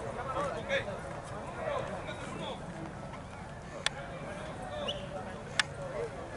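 Men talk in the distance outdoors.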